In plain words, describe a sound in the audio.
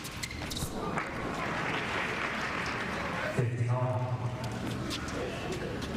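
A crowd cheers and applauds in a large arena.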